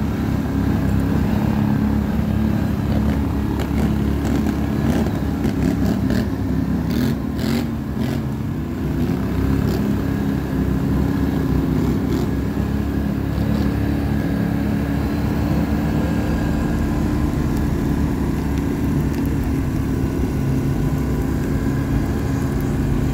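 A four-wheeler's engine rumbles loudly up close as it drives over dirt.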